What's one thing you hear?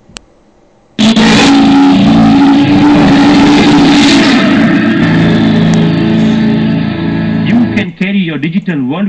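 Loud music plays through a computer speaker.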